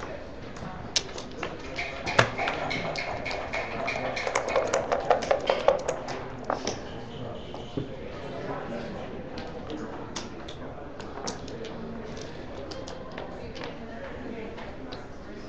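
Wooden checkers clack as they are moved on a board.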